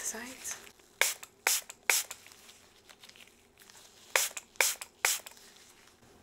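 A spray bottle sprays in short bursts.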